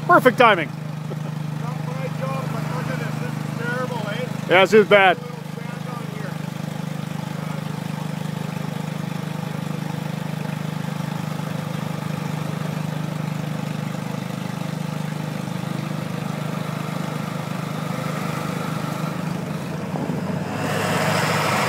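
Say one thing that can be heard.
A truck engine idles steadily nearby.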